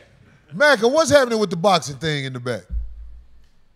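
A man speaks loudly and with animation close to a microphone.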